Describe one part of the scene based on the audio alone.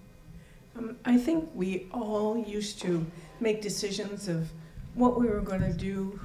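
A woman speaks clearly in a large hall.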